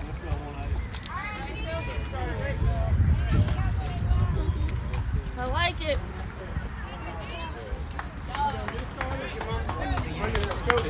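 Young women shout and cheer from a distance outdoors.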